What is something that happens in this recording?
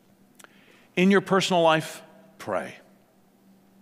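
A middle-aged man speaks briefly into a microphone in a calm, measured voice.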